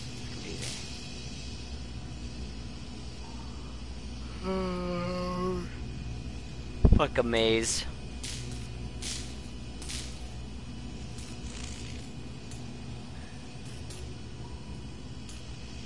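Electricity crackles and sparks in sharp bursts.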